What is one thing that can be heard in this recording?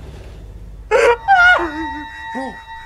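A man laughs close to a microphone.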